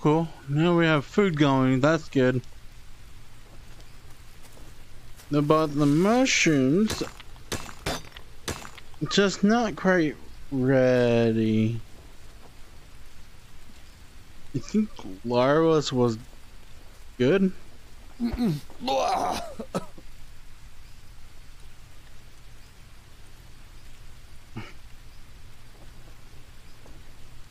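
Rain falls steadily through the trees.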